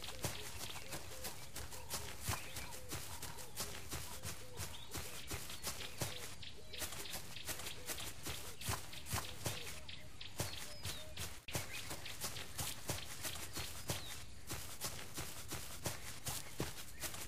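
A big cat's paws thud in quick, steady footsteps on the ground.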